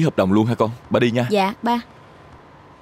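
A young woman speaks softly and warmly up close.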